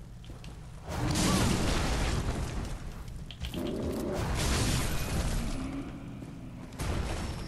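Blades slash and heavy blows land in a loud fight.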